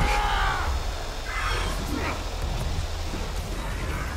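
A swirling energy vortex hums and roars.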